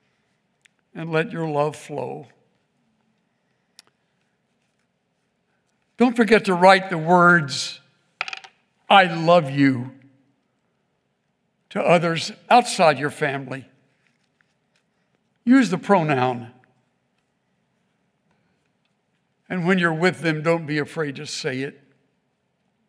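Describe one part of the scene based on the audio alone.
An elderly man speaks calmly into a microphone, with long pauses.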